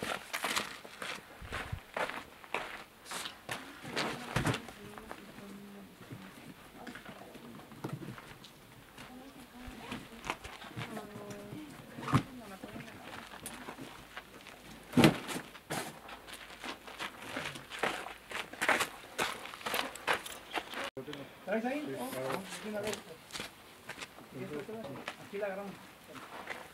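Shoes scuff and scrape on rock as someone climbs.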